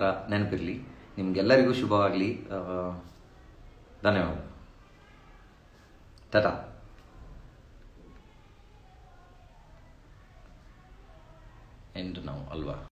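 A young man speaks calmly and close up, in short bursts with pauses.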